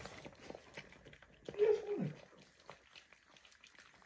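Puppies chew and crunch dry food from a metal bowl close by.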